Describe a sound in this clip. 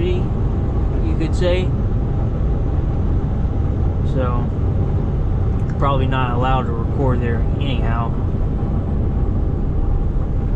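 Tyres roar on the highway.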